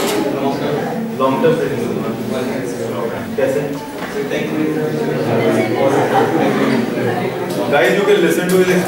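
A man lectures steadily in a room with some echo.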